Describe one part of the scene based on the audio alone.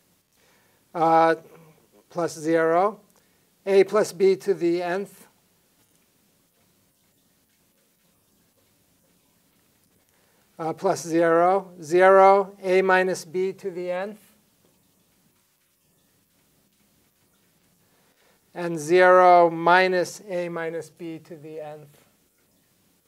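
A man explains calmly and closely into a microphone, in short bursts.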